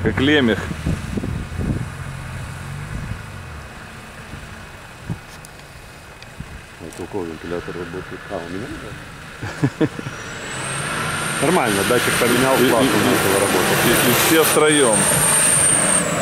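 Off-road vehicle engines rumble and rev nearby.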